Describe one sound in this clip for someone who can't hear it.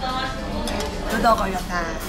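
Metal chopsticks clink against a bowl.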